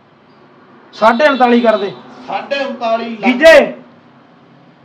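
A young man speaks loudly and with animation nearby.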